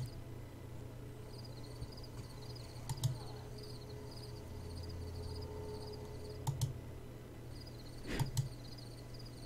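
Short electronic blips chirp rapidly as text scrolls in a game.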